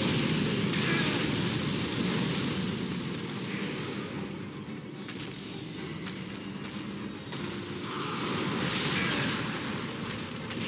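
Flames roar and whoosh loudly.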